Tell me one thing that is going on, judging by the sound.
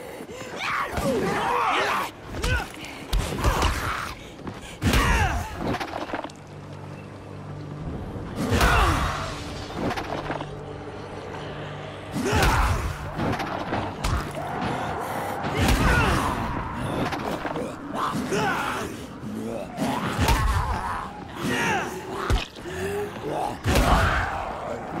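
A blunt weapon thuds repeatedly against a body.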